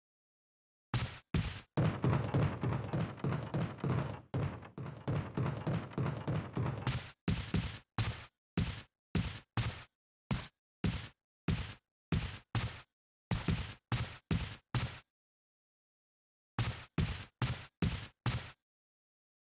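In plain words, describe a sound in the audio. Footsteps thud steadily on wooden stairs and floors.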